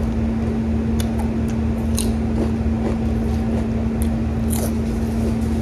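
A woman crunches on crisp food close by.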